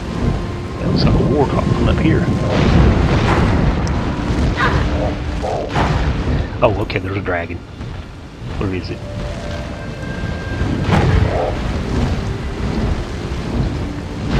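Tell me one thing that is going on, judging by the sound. Fireballs whoosh out in quick bursts.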